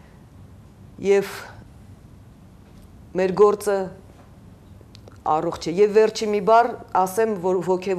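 A middle-aged woman speaks calmly into a microphone, in short bursts with pauses.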